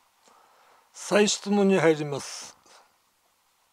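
An elderly man speaks briefly and formally over a microphone.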